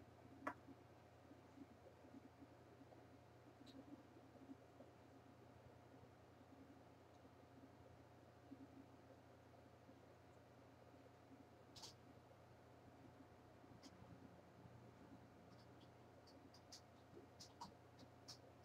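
A woman speaks softly and calmly, close by.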